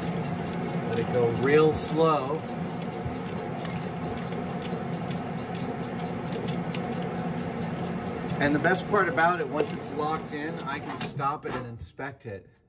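A lathe motor hums steadily as the chuck spins.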